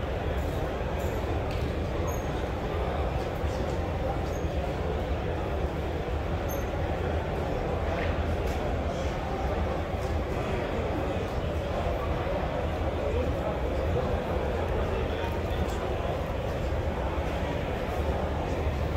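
A crowd of people chatters steadily in the background.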